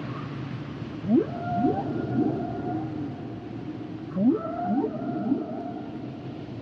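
Whales call underwater with low, rising moans and long wails.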